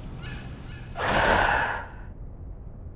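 A heavy metal door creaks open.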